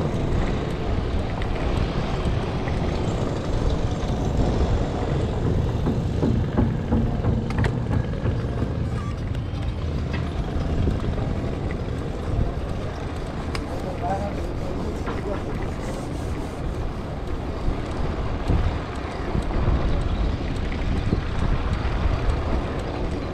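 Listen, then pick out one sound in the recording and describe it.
Wind buffets loudly and steadily outdoors.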